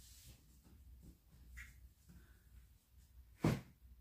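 Dough thumps softly onto a floured board.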